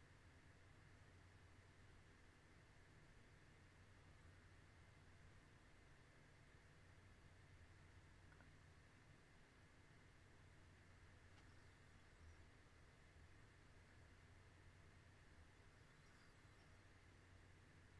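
A young woman breathes softly very close to a microphone.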